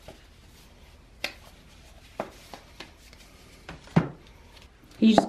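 Cardboard packets tap and rustle as hands handle them close by.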